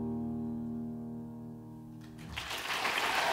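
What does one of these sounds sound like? A piano plays softly.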